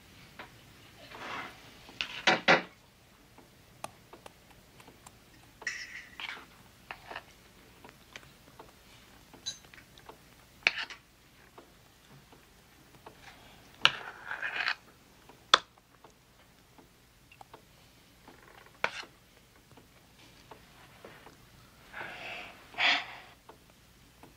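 A young man speaks briefly, close by.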